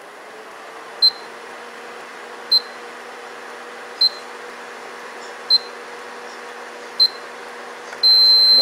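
An electronic cooktop beeps at steady intervals, then gives a long beep.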